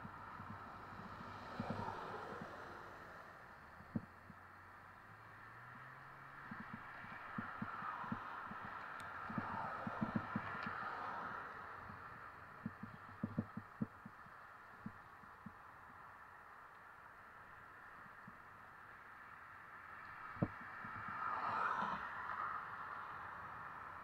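Cars drive past on a wet road, tyres hissing as they pass.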